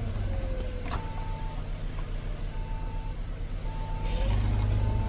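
A bus indicator ticks evenly.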